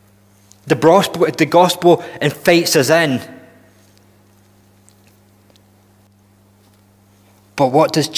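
A man speaks with animation into a microphone, with pauses.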